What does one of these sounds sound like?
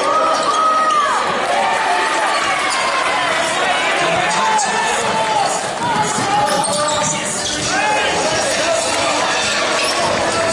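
Sneakers squeak sharply on a hardwood floor in a large echoing hall.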